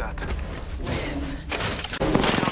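Heavy metal doors slide open with a mechanical whoosh.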